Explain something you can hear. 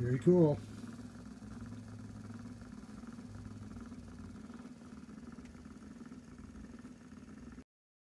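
A small motor hums steadily as gears turn and whir.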